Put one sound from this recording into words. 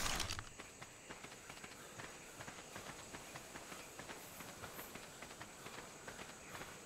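Footsteps crunch softly on dirt as a person walks.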